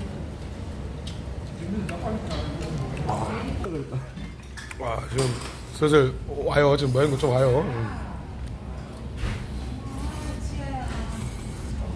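A man slurps noodles loudly, close by.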